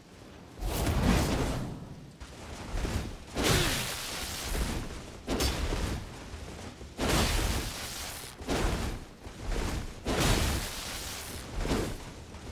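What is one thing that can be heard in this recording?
Swords clash and ring with heavy metallic impacts.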